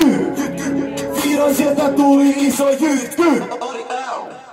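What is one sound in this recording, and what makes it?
A man shouts with excitement into a microphone over loudspeakers.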